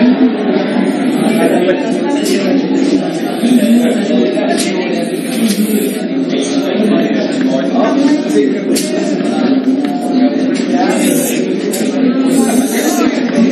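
Chalk taps and scrapes on a board.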